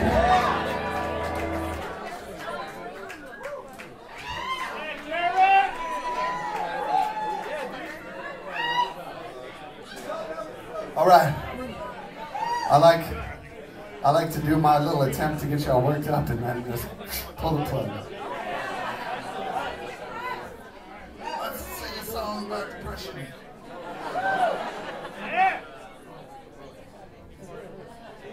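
A man talks with animation into a microphone, heard through loudspeakers in a lively room.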